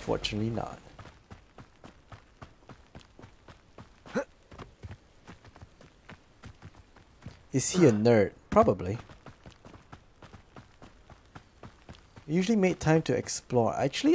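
Footsteps run quickly along a dirt path.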